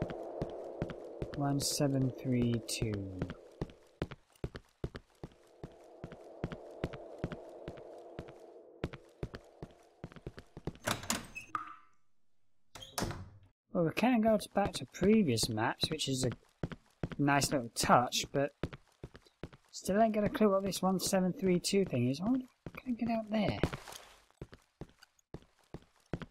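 Footsteps tap on hard stone floors.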